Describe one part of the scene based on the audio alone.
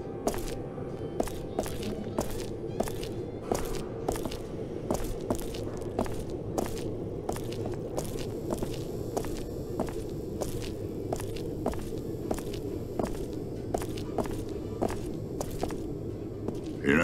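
Heavy footsteps thud steadily on a hard floor.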